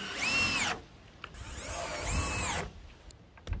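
A cordless drill drives a screw into wood with a whirring whine.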